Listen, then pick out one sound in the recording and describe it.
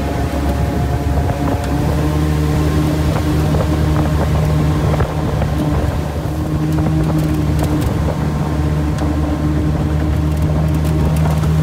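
River water rushes and splashes against a boat's hull.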